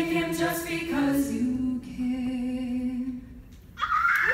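A young woman sings a slow solo melody through a microphone.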